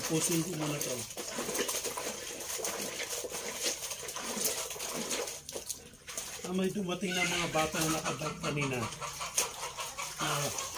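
Water splashes and sloshes as clothes are scrubbed in a basin.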